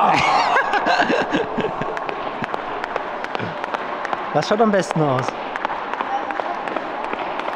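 A skipping rope slaps the floor in a quick, steady rhythm, echoing in a large hall.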